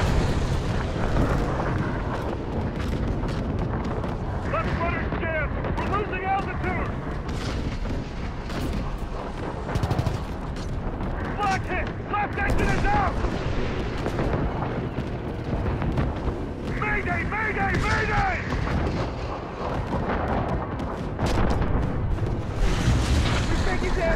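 Flak shells burst with sharp booms.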